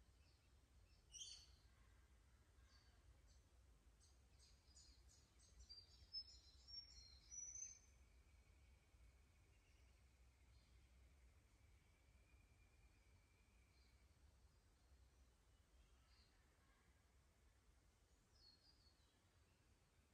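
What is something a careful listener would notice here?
A shallow creek trickles softly over stones.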